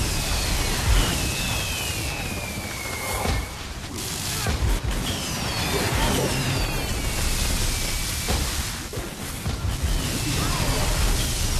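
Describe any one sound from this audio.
Spell effects crackle and burst in a game battle.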